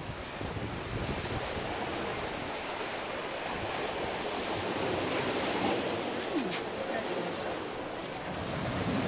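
Waves wash gently onto the shore nearby.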